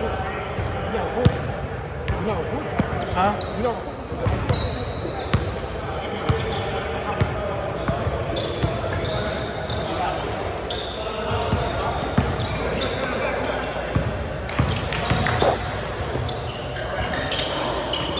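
Sneakers squeak on the gym floor.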